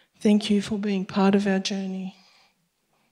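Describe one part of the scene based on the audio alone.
A woman speaks into a microphone, heard over loudspeakers in a hall.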